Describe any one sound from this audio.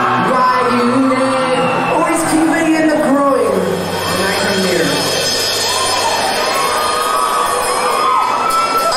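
A rock band plays loudly in a large echoing hall.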